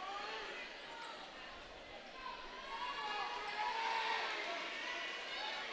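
A crowd in a large echoing gym murmurs and chatters.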